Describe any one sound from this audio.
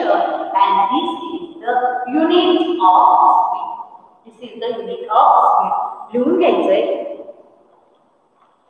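A woman speaks clearly and with animation close to the microphone.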